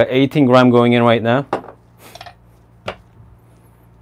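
A metal cup clinks as it is set down.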